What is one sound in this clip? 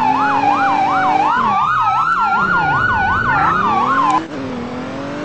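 A police car siren yelps.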